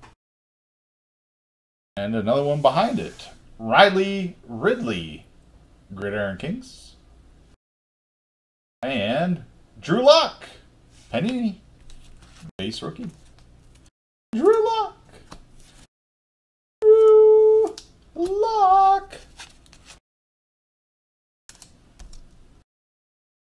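Trading cards rustle and slide in hands.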